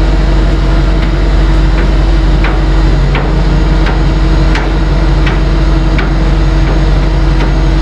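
Metal clanks sharply at regular intervals as a car moves onto a ramp.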